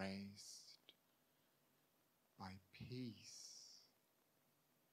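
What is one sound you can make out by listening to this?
A man speaks calmly and slowly into a microphone, with long pauses.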